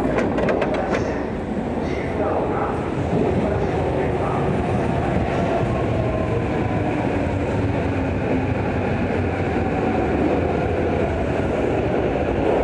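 A busy crowd murmurs in a large echoing hall.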